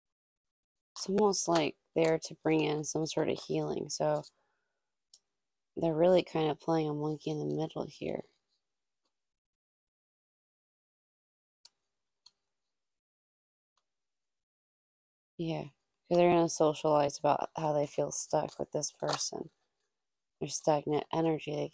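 A young woman speaks calmly and close to a microphone, with pauses.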